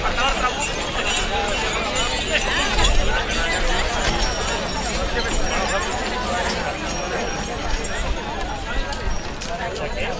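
A crowd of men, women and children chatter and call out outdoors.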